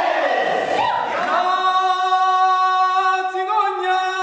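A man sings loudly, holding a long note.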